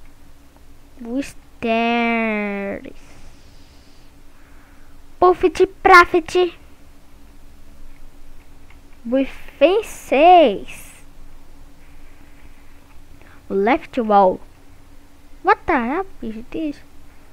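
A young boy talks with animation close to a headset microphone.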